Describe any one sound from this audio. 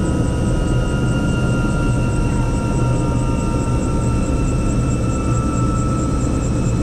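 A helicopter engine whines steadily from close by.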